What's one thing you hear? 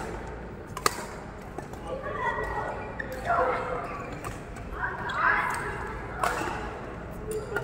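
Badminton rackets smack a shuttlecock back and forth in an echoing hall.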